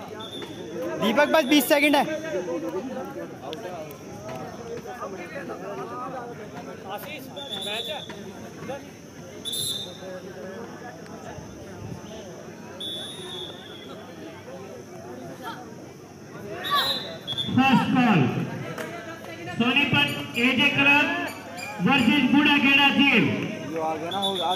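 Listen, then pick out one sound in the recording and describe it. Young men shout loudly outdoors.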